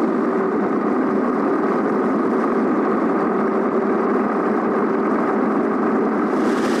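A truck's diesel engine drones steadily as the truck drives along.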